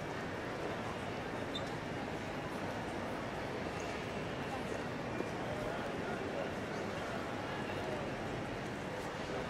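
A crowd murmurs steadily, echoing in a large hall.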